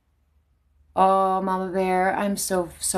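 A young woman speaks close to a microphone in a high, sing-song voice.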